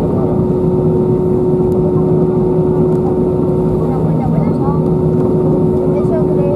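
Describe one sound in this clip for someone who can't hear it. A jet engine hums loudly and steadily from inside the cabin.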